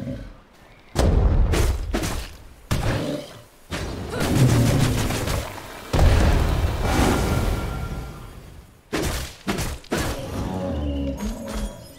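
Blows land with heavy thuds in a fight.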